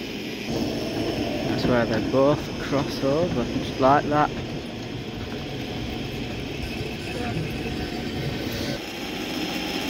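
A tram rumbles past along a track.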